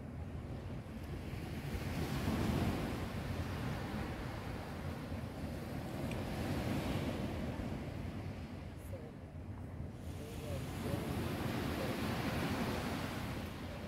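Wind blows steadily outdoors, buffeting the microphone in gusts.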